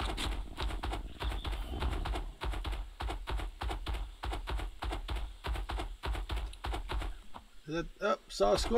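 Heavy paws thud rapidly on sand as a large cat runs.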